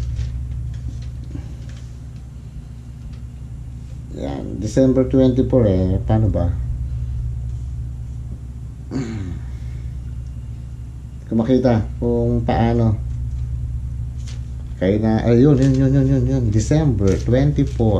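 Paper rustles as a man handles an envelope.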